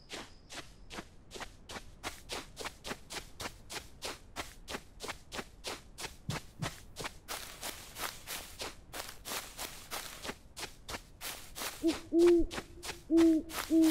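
Footsteps run quickly and steadily over grass and dirt.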